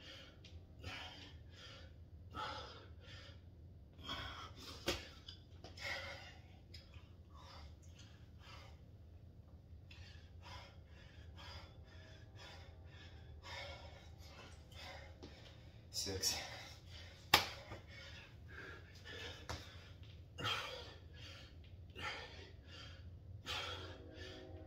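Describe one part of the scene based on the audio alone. A man breathes hard and rhythmically while exercising.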